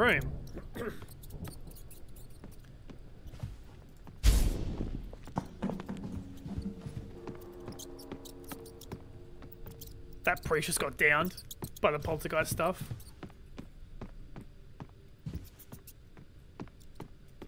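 Heavy footsteps thud quickly across a wooden floor.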